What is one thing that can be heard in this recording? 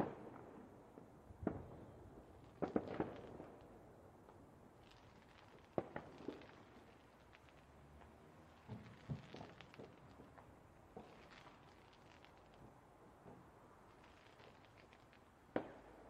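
Fireworks burst and crackle in the distance.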